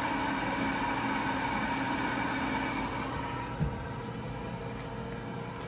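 Bacon sizzles in an oven.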